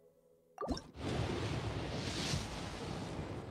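A shooting star whooshes loudly through the air.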